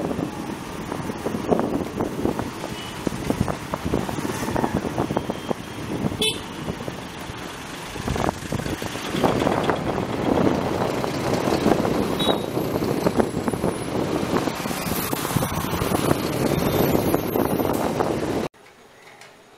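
Heavy truck engines idle and rumble close by in street traffic.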